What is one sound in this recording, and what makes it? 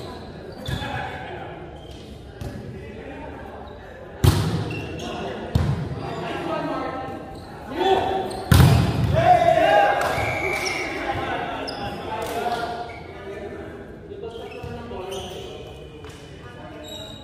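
Young men call out and shout to each other across the court.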